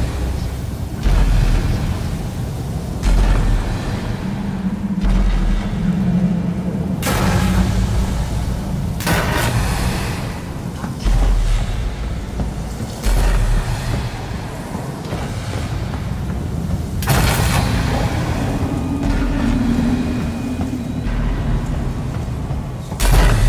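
Heavy footsteps thud slowly on a metal walkway.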